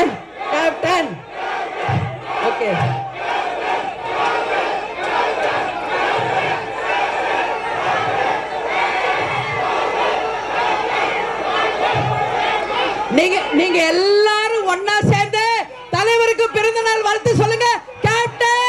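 A middle-aged woman speaks forcefully into a microphone over loudspeakers.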